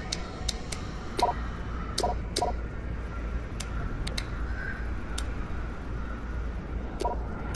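Short electronic menu clicks and beeps sound now and then.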